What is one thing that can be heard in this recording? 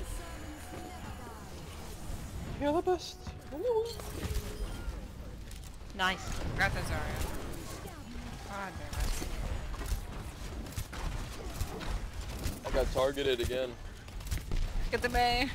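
Explosions boom with deep thuds.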